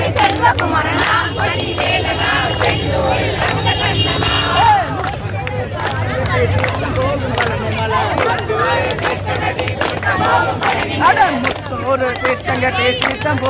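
A crowd of women and men chatter and sing loudly outdoors.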